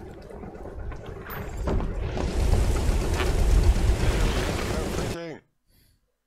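Water laps and splashes against a wooden boat.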